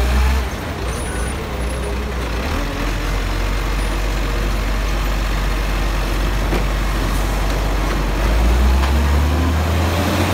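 A garbage truck's diesel engine rumbles steadily up close.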